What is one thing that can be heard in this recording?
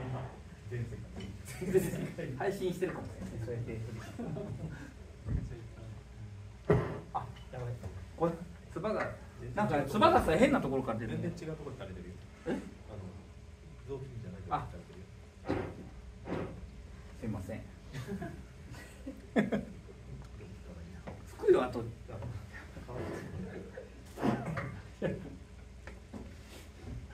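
Several men and women chat casually nearby in a large room.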